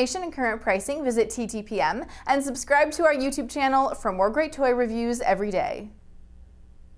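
A woman speaks brightly and clearly into a microphone.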